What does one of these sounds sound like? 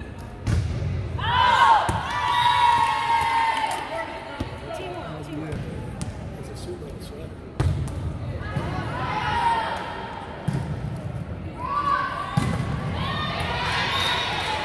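Young women shout and call out loudly in an echoing hall.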